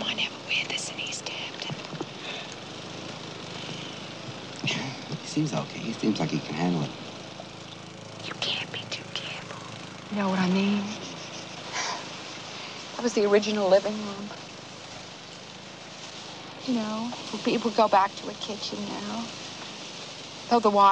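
A middle-aged woman talks with animation close by, outdoors.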